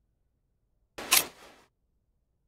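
A blade slices through cloth.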